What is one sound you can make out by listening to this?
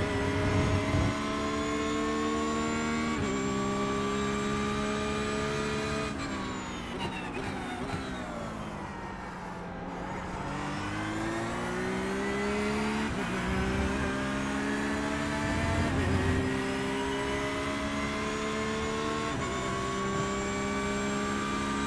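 A racing car engine roars, climbing through the gears, slowing for a corner and then speeding up again.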